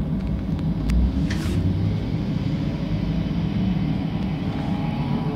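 A bus pulls away, its engine rising in pitch.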